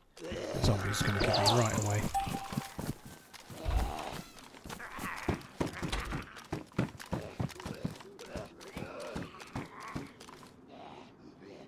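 Footsteps thud quickly on hard floors and stairs.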